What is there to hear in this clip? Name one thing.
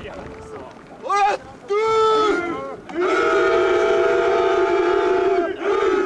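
A team of young men shouts together loudly outdoors.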